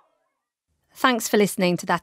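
A woman speaks calmly close to a microphone.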